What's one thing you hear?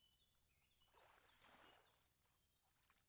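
A small fish splashes into water.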